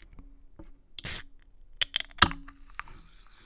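A metal can's tab clicks and the can hisses open.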